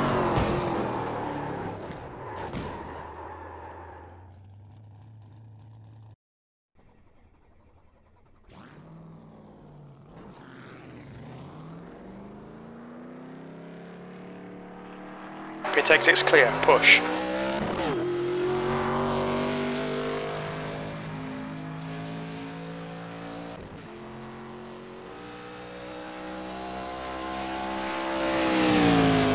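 A race car engine roars at speed, its pitch rising and falling.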